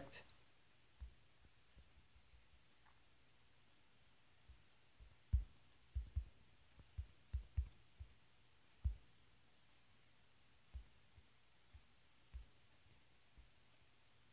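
Fingertips tap softly on a phone's touchscreen.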